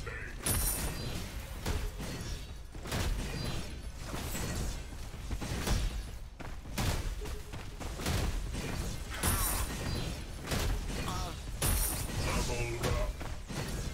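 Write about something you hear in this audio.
A fiery blast bursts with a whoosh.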